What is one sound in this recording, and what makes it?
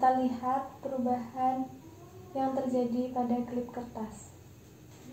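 A young woman speaks calmly close by.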